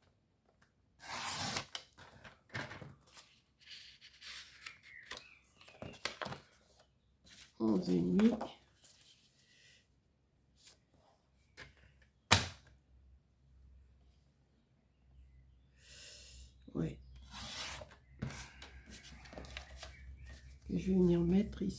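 Card rustles and flaps as it is handled.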